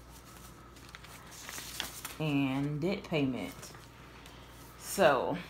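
Paper envelopes rustle and crinkle softly in hands.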